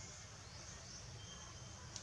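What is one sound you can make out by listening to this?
A baby monkey squeals briefly.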